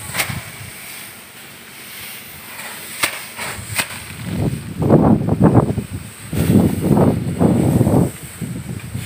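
Dry straw rustles and crackles as it is handled close by.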